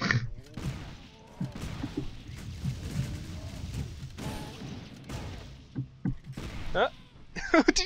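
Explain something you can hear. Game weapons fire and hit with short thuds and blasts.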